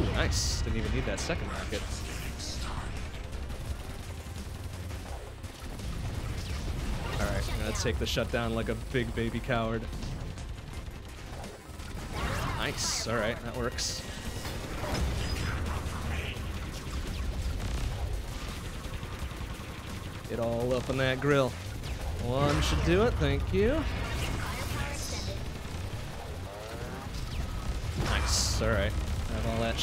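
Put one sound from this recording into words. Video game music plays steadily.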